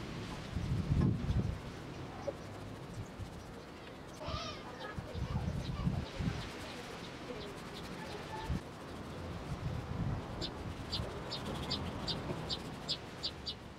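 A brush scrapes and dabs against wood.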